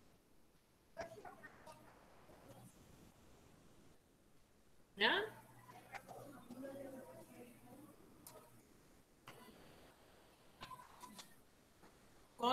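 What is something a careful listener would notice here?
A woman speaks calmly, heard faintly over an online call.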